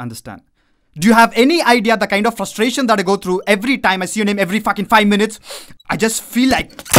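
A young man speaks forcefully, close by.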